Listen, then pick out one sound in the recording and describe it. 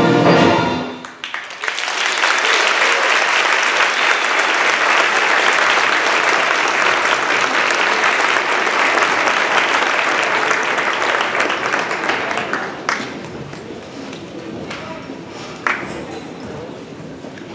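A large crowd applauds and cheers in a large echoing hall.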